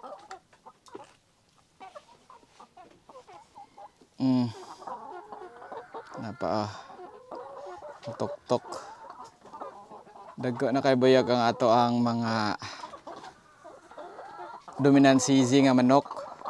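Hens cluck softly close by.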